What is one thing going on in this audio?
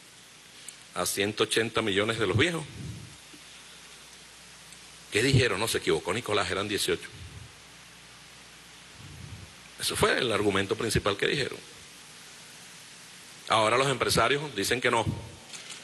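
A middle-aged man speaks forcefully into a microphone in short bursts, with pauses between.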